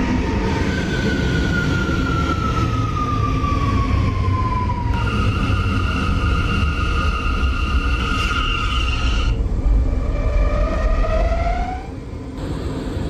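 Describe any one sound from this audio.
A subway train rumbles and its motors whine as it slows to a stop.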